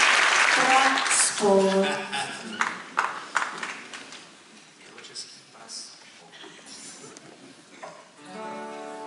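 A woman speaks calmly through a microphone to an audience.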